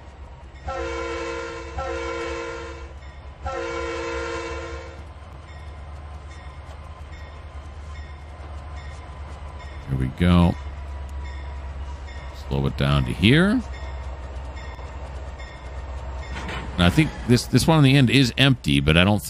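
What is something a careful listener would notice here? A diesel locomotive engine rumbles steadily.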